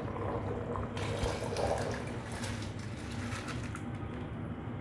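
Raw rice pours into bubbling liquid with a soft hiss.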